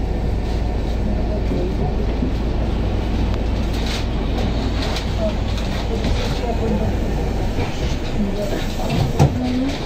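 Traffic rumbles steadily on a road at night.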